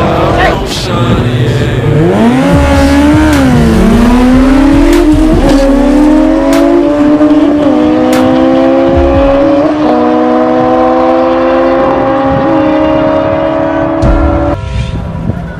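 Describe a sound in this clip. Motorcycle engines roar loudly and climb through the gears as the motorcycles race away.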